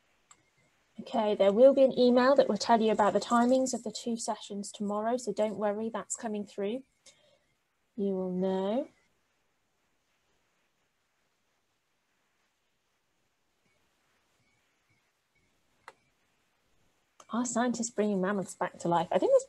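A woman speaks calmly over an online call, in pauses.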